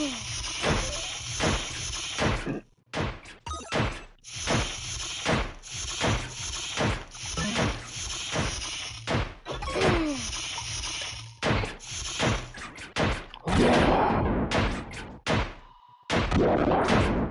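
Punchy game attack effects thump and crack in quick succession.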